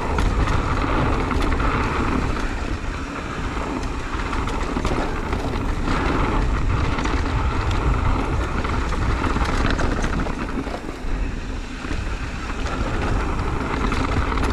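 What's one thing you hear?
Wind rushes and rumbles against the microphone.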